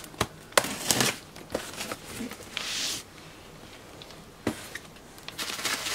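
Cardboard flaps rustle as a box is opened.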